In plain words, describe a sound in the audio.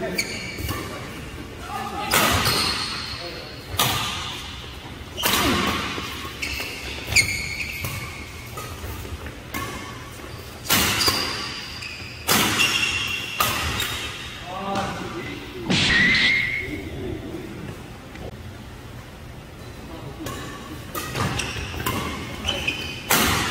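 Rackets sharply strike a shuttlecock back and forth in an echoing hall.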